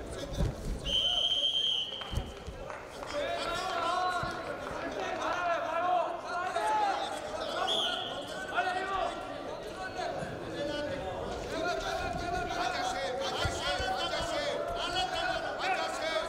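Wrestlers' bodies thump and scuffle on a mat.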